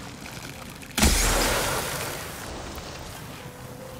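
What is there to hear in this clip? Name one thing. A loud blast bursts and its rumble slowly fades.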